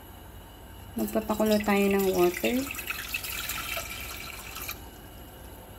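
Water pours and splashes into a pot.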